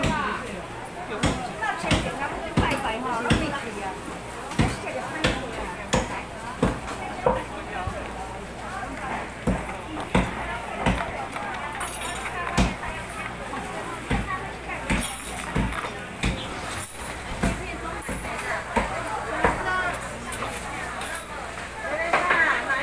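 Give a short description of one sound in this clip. A bicycle rattles and clatters as it rolls over tiled ground.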